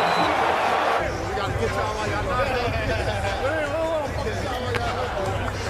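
A young man laughs and chats nearby.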